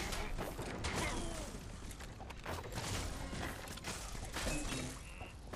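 Weapons strike and blasts of magic crack in quick succession.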